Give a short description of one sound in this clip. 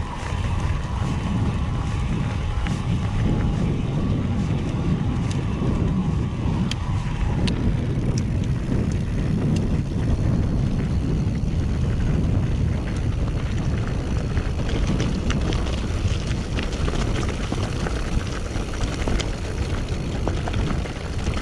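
Wind rumbles loudly against the microphone outdoors.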